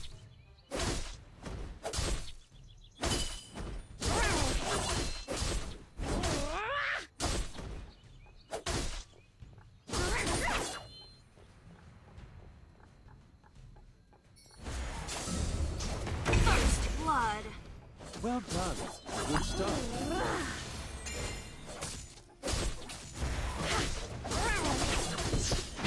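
Game sound effects of blows and blasts ring out in quick bursts.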